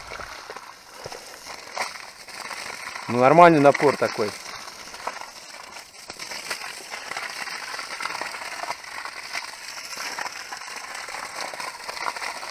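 Water gushes from a hose and splashes onto the ground.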